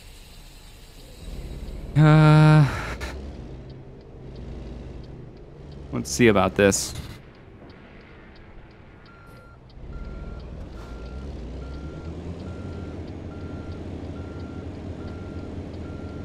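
A truck's diesel engine rumbles steadily and revs up.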